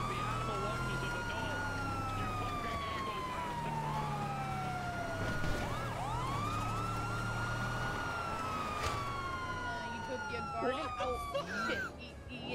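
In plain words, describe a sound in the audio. A police siren wails steadily, rising and falling.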